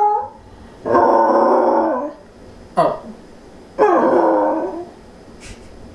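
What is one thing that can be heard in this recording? A dog grumbles and yips in short bursts.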